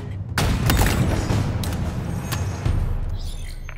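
A rifle fires loud shots with booming echoes.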